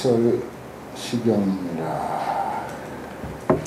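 An elderly man speaks calmly into a microphone in a reverberant hall.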